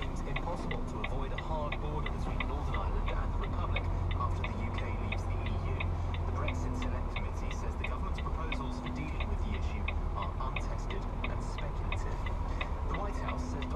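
A turn indicator ticks rapidly and evenly.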